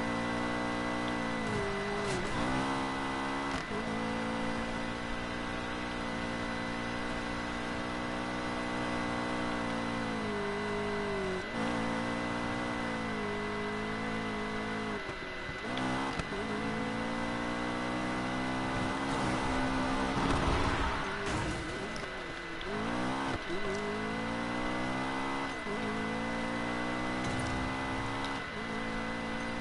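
A racing car engine roars, revving up and down as gears shift.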